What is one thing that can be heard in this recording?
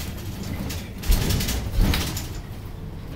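The bus interior rattles and clatters over bumps.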